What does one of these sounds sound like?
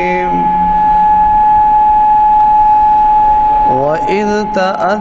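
A young man chants loudly through a microphone, holding one long steady note.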